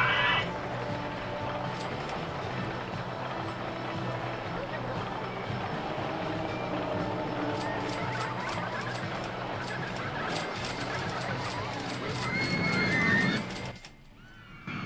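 A roller coaster train rattles along its track.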